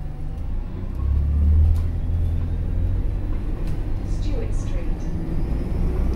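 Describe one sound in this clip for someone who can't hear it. The bus interior rattles and creaks as the bus drives.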